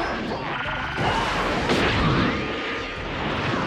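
An energy blast whooshes and roars.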